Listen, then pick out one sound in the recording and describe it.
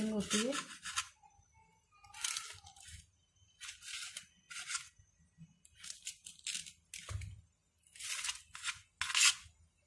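A knife scrapes against a metal tray.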